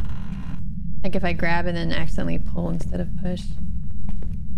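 A young woman speaks into a microphone close by.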